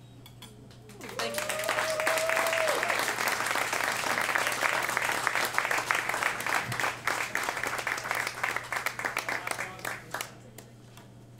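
An audience applauds and cheers in a small room.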